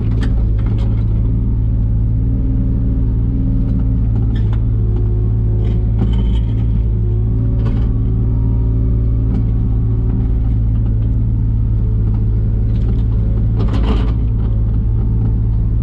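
A digger's diesel engine rumbles steadily up close.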